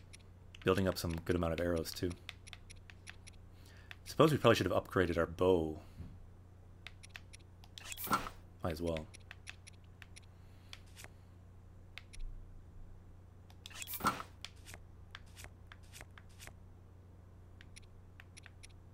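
Short electronic menu ticks sound as a cursor moves between items.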